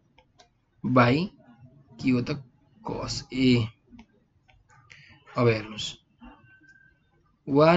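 A young man explains calmly and steadily into a close microphone.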